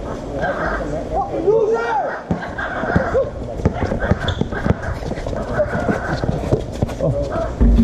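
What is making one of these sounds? Sneakers squeak sharply on an outdoor court.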